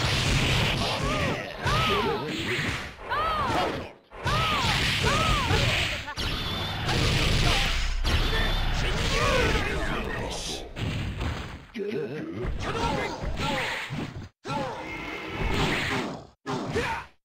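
Fighting game hits and blasts crack and boom in quick bursts.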